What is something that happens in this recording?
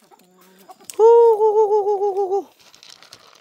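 A rooster crows nearby.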